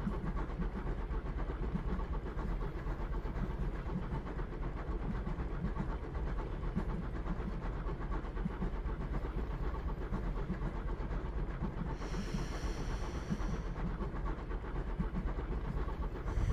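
A train rumbles along rails.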